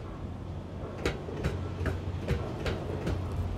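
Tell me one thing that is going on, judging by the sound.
Footsteps clank on a metal grating at a steady walking pace.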